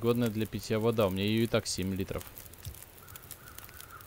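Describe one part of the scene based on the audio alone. A fire crackles softly.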